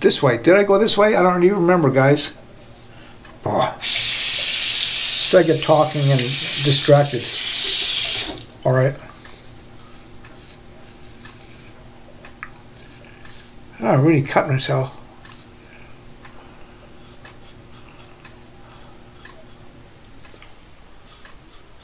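A razor scrapes against stubble.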